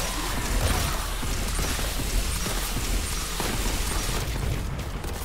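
A plasma gun fires crackling energy bolts.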